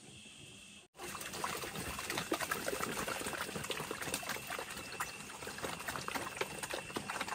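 Pigs grunt and slurp as they eat noisily.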